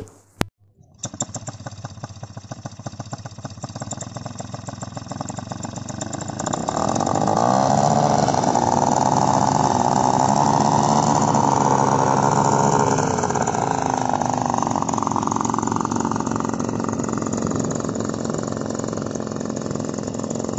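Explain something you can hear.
A paramotor engine roars steadily and rises in pitch as a trike rolls over the ground.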